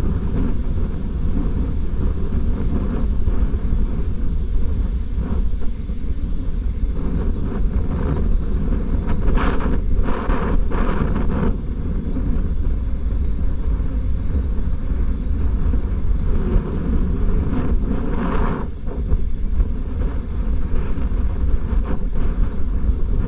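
Wind buffets loudly, rumbling and roaring steadily outdoors.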